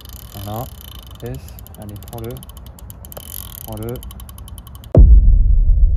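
A fishing reel clicks rapidly as it is wound.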